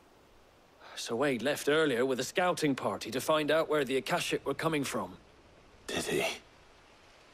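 A young man answers calmly at length.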